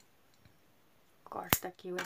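Scissors snip through yarn.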